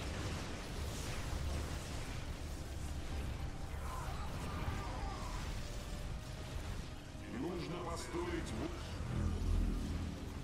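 Laser weapons zap and crackle.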